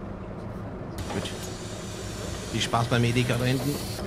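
Bus doors hiss shut.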